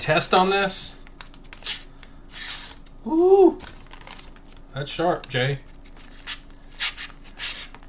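Paper rustles and crinkles in a man's hands.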